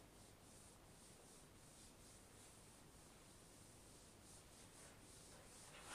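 A felt eraser rubs and squeaks softly across a whiteboard.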